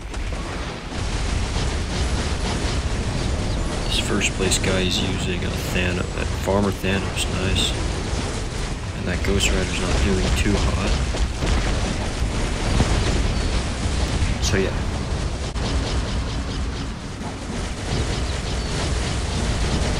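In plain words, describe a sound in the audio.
Game explosions and magic blasts boom and crackle.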